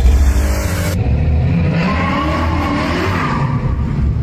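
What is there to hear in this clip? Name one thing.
A car engine rumbles as a car rolls closer.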